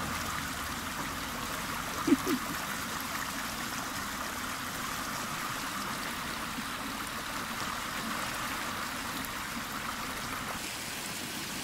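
Shallow water rushes and gurgles steadily over rock.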